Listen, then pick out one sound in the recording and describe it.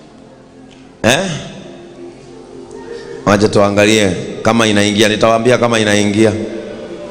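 A man speaks loudly and with animation through a microphone, echoing in a large hall.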